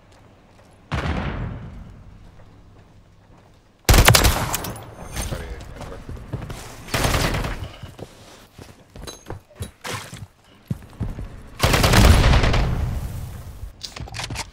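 Gunfire bursts loudly in rapid shots.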